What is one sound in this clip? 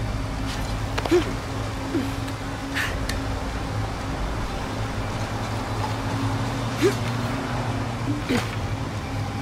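Hands and feet knock against wooden rungs as someone climbs.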